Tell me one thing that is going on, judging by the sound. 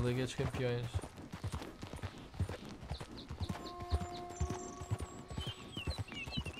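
Horse hooves thud steadily on a dirt trail.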